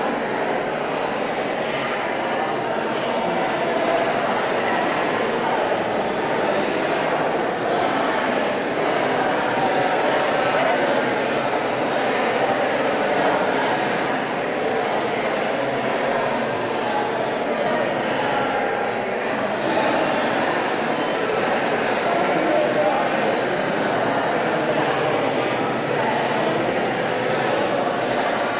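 A woman speaks steadily through a microphone in a large echoing hall.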